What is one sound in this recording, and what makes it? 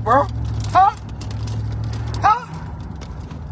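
A young man lets out short, high-pitched exclamations close by.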